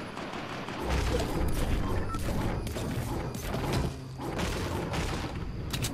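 A pickaxe strikes a wooden wall.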